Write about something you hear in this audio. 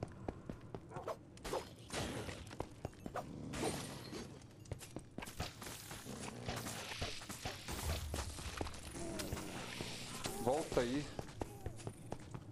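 Magic blasts and small explosions crackle and boom in a game fight.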